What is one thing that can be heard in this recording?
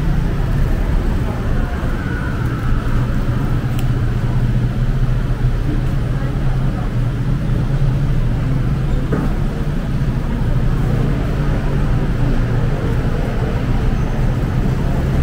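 Cars pass by on the street.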